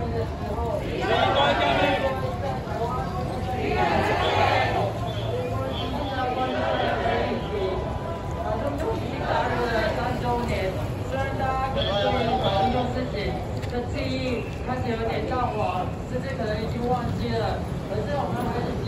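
Many men and women talk nearby.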